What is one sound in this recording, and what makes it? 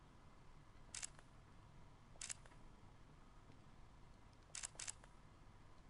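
Soft game menu clicks sound now and then.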